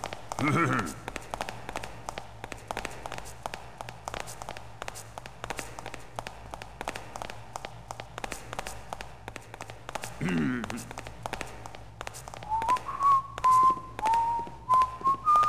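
Footsteps tap steadily on a hard tiled floor.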